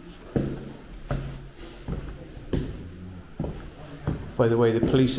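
Footsteps thud slowly down stairs in an echoing stairwell.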